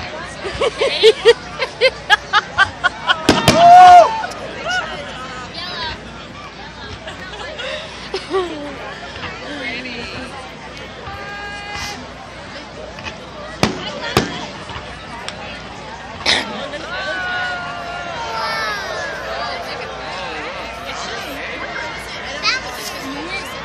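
Fireworks crackle and bang in the distance.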